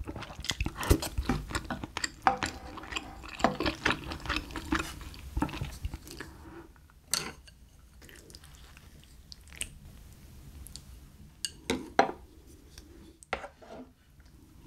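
Chopsticks and a spoon clink against a dish.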